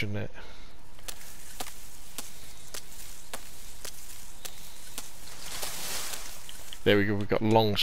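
Leaves and branches rustle as someone pushes through a bush.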